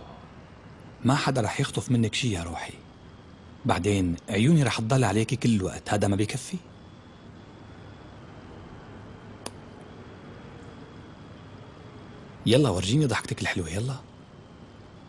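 A man speaks softly and closely.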